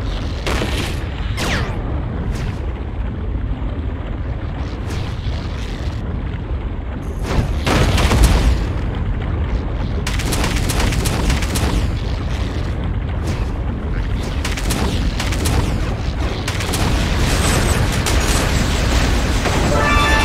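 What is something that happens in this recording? Laser beams zap and crackle repeatedly.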